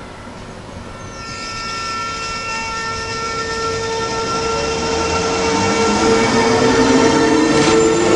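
Train wheels rumble and clatter on the rails, growing louder.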